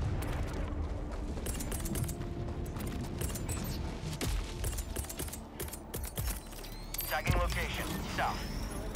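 Heavy boots crunch on gravel at a run.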